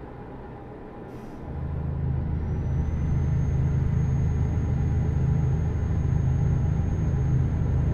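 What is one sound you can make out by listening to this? A heavy truck engine rumbles steadily and grows louder.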